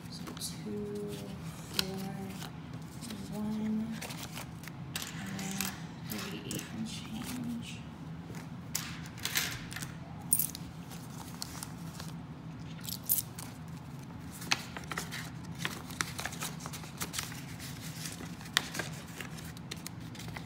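Paper bills rustle and crinkle as they are handled and counted.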